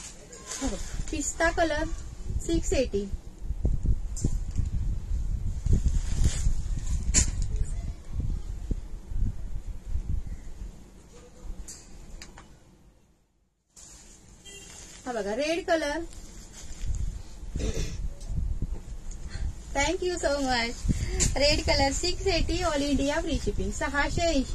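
Fabric rustles as it is handled close by.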